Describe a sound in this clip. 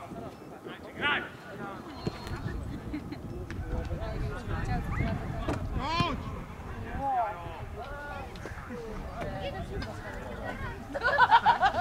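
Players shout to each other across an open field, distant.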